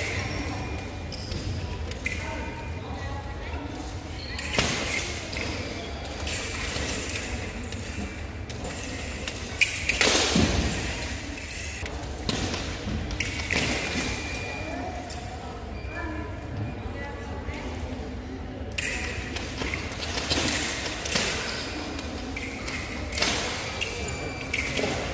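Fencers' shoes stamp and squeak on the floor.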